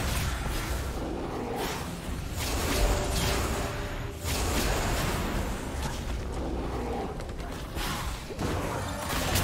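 Magic spell effects whoosh, crackle and burst in quick succession.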